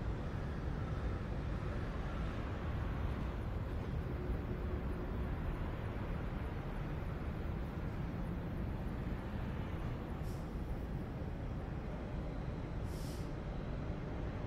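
A train's engine rumbles and hums, slowly fading as it pulls away.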